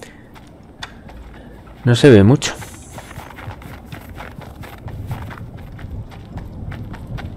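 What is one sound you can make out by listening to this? Footsteps patter quickly on snow and pavement.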